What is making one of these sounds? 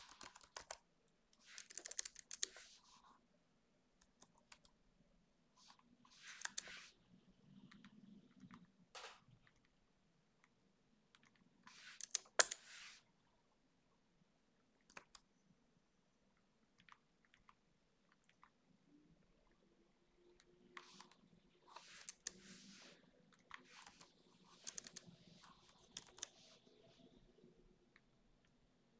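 Computer keys clatter in quick bursts with pauses between.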